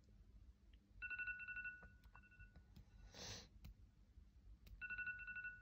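A phone alarm beeps in quick, rapid pulses.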